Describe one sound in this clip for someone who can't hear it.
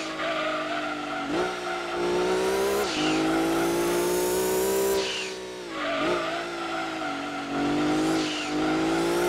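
A racing car engine whines loudly, rising in pitch as it speeds up and dropping as it shifts gear and slows.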